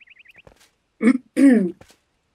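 A young woman speaks briefly close to a microphone.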